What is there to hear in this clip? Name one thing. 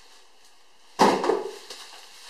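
A cardboard box thumps down.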